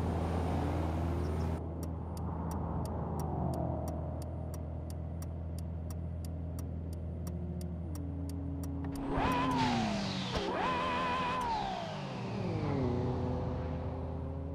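A sports car engine hums and revs, rising and falling in pitch.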